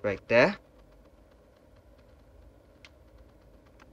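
A cable plug clicks into a phone.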